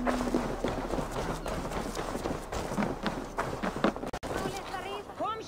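Heavy footsteps thud across wooden boards and crunch through snow.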